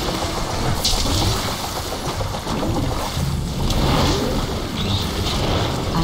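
A video game lightning spell crackles.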